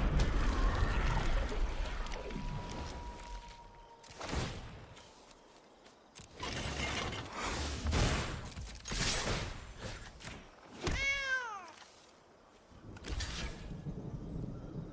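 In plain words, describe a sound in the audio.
Game sound effects whoosh and chime as cards are played.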